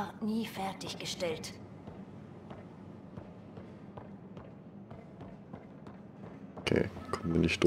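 Quick footsteps patter on a hard metal floor.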